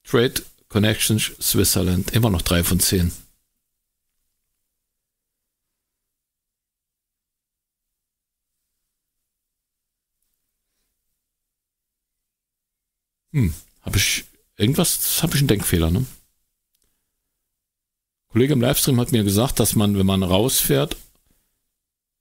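A man talks casually into a close microphone, with pauses.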